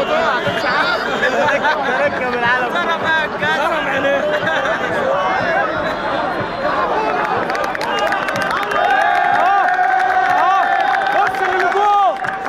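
A large crowd of men and women shouts and chants outdoors.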